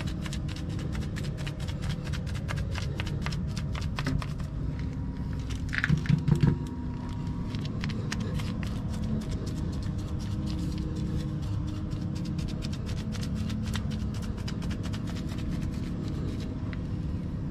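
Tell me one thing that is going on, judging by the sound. A putty knife scrapes and spreads thick coating along a concrete joint.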